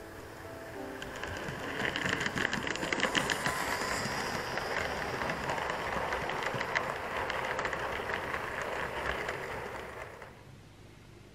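A model train clatters past close by.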